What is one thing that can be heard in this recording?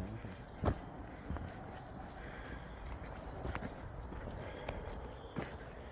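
Footsteps crunch on leaves and twigs on a forest floor.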